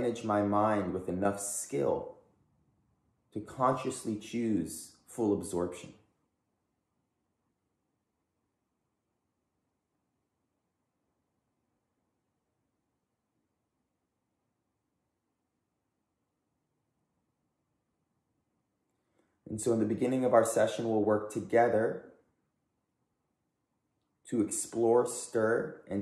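A man speaks calmly and closely, pausing for long silences.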